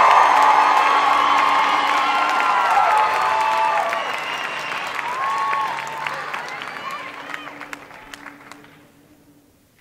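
A vocal group sings together into microphones in a large hall, slowly fading out.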